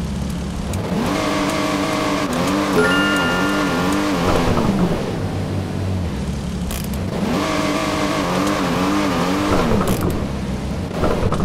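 Tyres screech as a car skids.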